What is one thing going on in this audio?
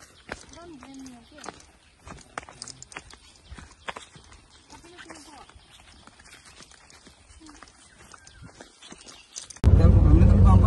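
Footsteps brush softly through grass.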